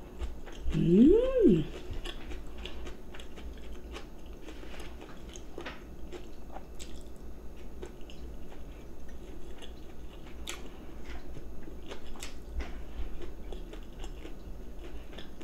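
A woman chews and slurps food close by.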